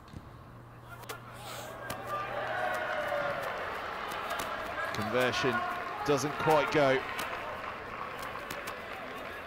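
A crowd cheers and applauds in an open stadium.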